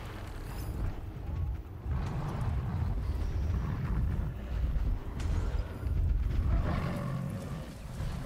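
Dry grass rustles as someone moves through it.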